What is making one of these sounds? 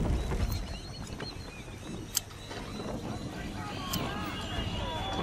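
Water rushes and splashes against a sailing ship's hull.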